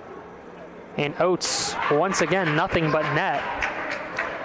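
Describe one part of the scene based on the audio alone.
A crowd of spectators cheers and shouts in an echoing hall.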